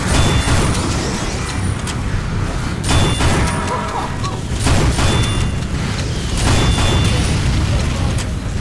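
Grenades explode in loud, repeated booms.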